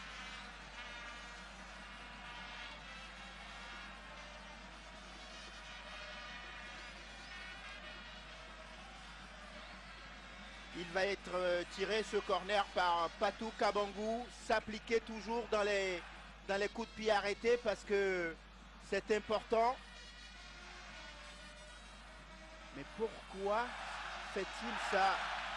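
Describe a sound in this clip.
A large crowd chants and cheers in a stadium.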